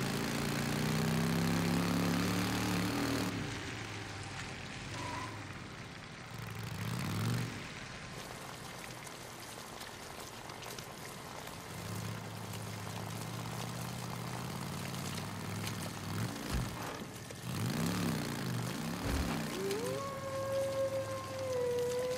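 A motorcycle engine rumbles and revs as it rides along.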